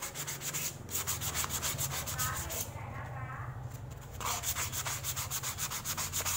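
Sandpaper rubs quickly back and forth with a rapid scratchy rhythm.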